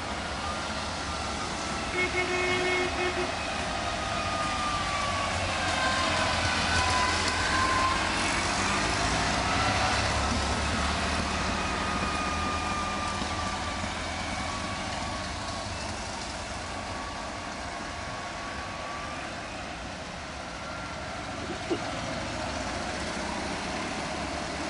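Small classic cars with air-cooled two-cylinder engines drive past one after another.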